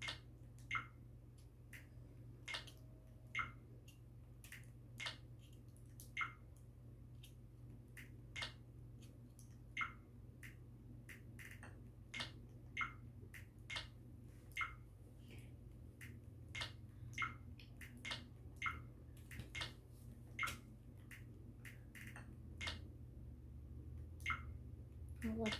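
Short menu clicks and blips sound from a television as selections change.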